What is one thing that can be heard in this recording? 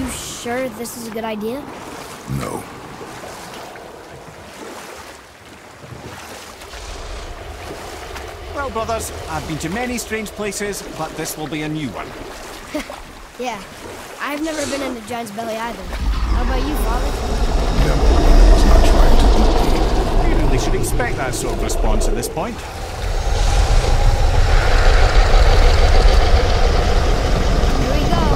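Oars splash through water as a boat is rowed.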